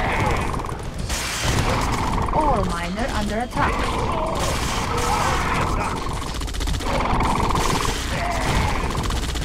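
Laser weapons zap and whine in a busy battle.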